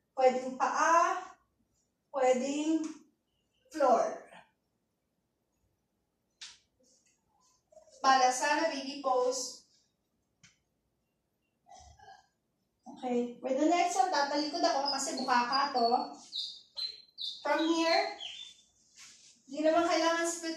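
A young woman speaks calmly and close by, in bursts with pauses.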